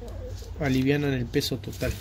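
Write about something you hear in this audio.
Gritty soil crunches under a pressing hand.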